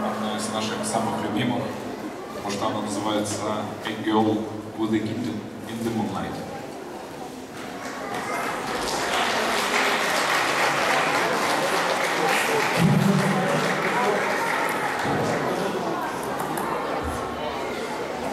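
A band plays live music through loudspeakers in a large echoing hall.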